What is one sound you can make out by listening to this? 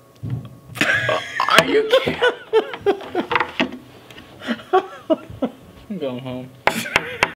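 An older man talks and laughs close to a microphone.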